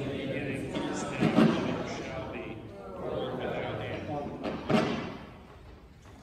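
An elderly woman speaks calmly in a large echoing hall.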